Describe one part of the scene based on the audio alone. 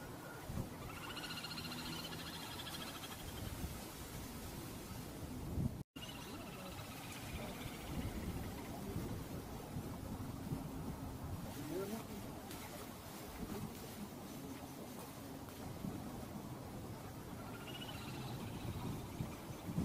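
Small water birds give high, rapid trilling calls.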